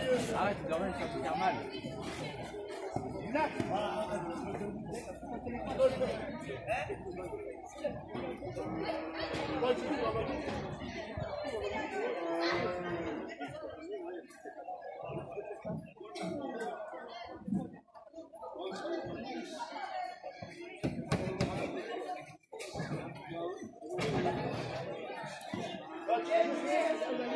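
A crowd of men and women talks and calls out nearby.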